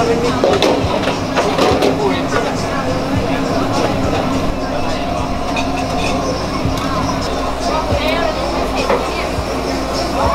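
Broth bubbles and simmers in a pot.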